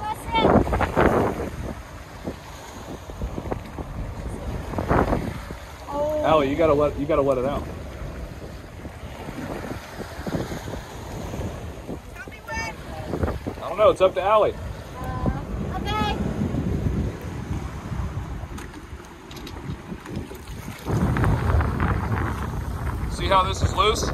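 Water laps and splashes against a boat hull.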